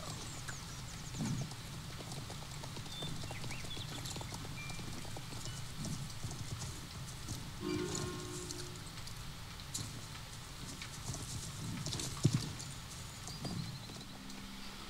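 Horse hooves thud steadily at a gallop on soft ground.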